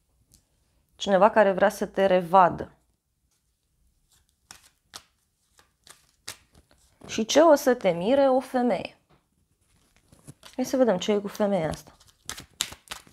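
A young woman speaks calmly and close by, in short phrases.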